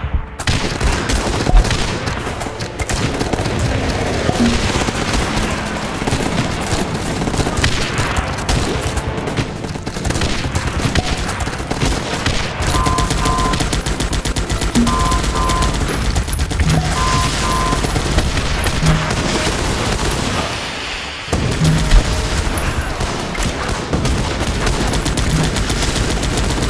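Rapid gunfire rattles without pause.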